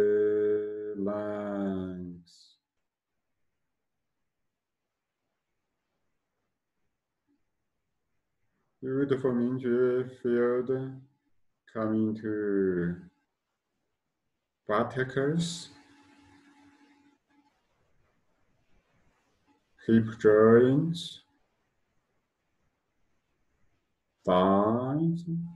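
A man chants slowly in a calm, low voice, close by, with pauses between phrases.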